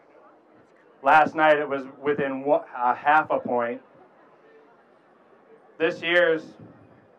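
A man speaks loudly and with energy into a microphone through a loudspeaker, outdoors.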